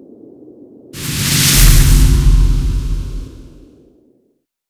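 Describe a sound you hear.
A loud whooshing burst swells and slowly fades.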